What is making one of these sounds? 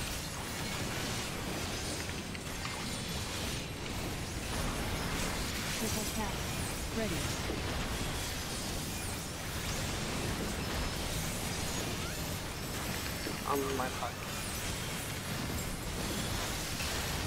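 Magic blasts and fiery explosions crackle and boom without pause.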